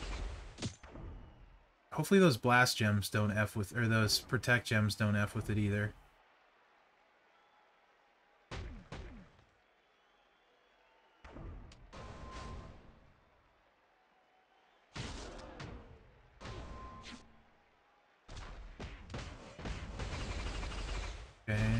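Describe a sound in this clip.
Thuds and crashes of a video game wrestling fight sound in bursts.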